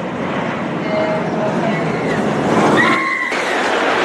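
A roller coaster train rumbles along its track.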